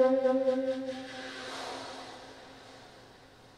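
A saxophone plays a held low note up close, then falls silent and the sound rings away in the room.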